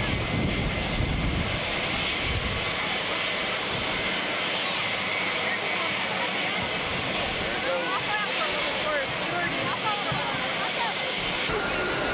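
A young girl talks quietly.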